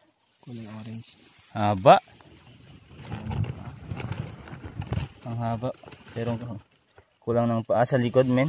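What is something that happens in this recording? Dry grass rustles close by as hands brush through it.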